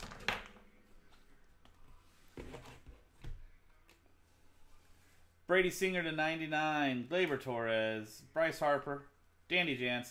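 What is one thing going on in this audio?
Plastic card cases click and clack against each other.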